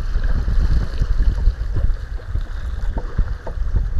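A wave breaks and splashes over a kayak's bow.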